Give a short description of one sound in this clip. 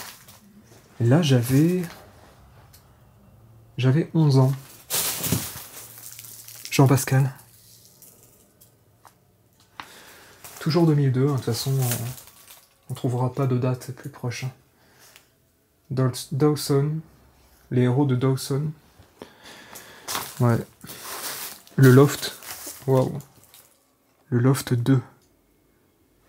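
A man speaks quietly and calmly close by.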